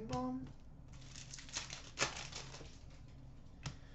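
A foil card wrapper crinkles and rustles as hands tear it open.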